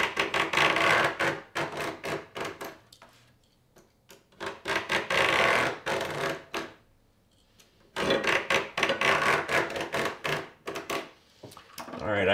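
A knife blade scrapes and rasps in repeated strokes across a plastic sheet.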